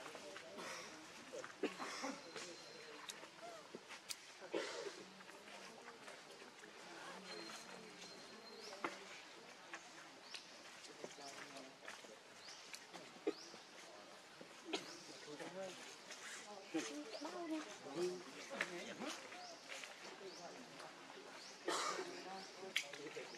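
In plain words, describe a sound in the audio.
A monkey's fur rustles softly as it is groomed by another monkey.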